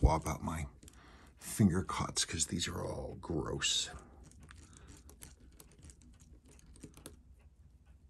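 Small metal parts click and tap softly.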